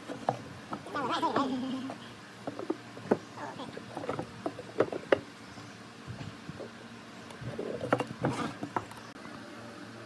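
Wooden boards knock and bump on a wooden tabletop.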